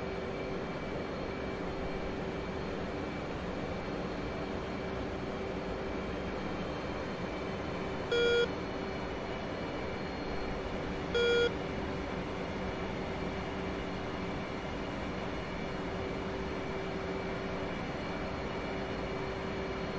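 A jet engine drones steadily, heard from inside the cockpit.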